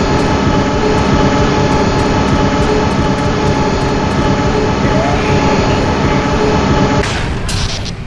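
A heavy engine rumbles and drones up close.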